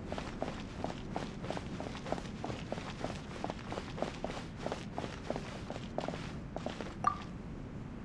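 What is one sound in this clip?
Quick footsteps tap on stone.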